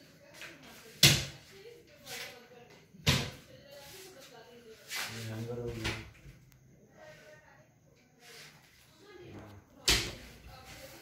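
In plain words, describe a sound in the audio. Wooden cabinet doors thump shut.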